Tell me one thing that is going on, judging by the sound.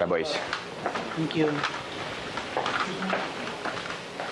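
A young woman speaks urgently into a phone.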